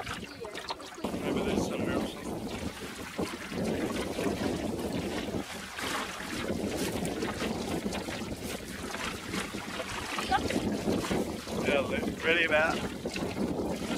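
Water splashes and laps against a small boat's hull.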